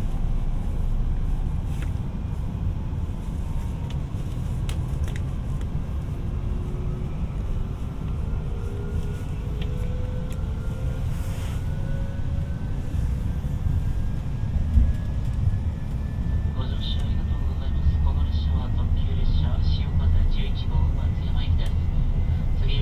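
A train's electric motor whines, rising in pitch as it speeds up.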